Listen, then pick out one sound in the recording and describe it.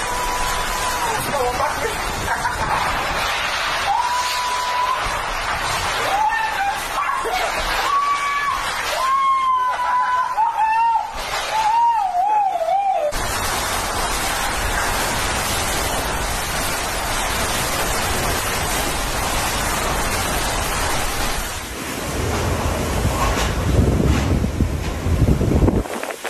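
Strong wind roars in heavy gusts outdoors.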